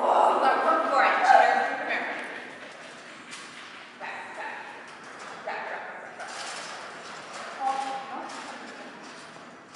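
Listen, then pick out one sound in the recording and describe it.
A woman calls out encouragingly to a dog in a large echoing hall.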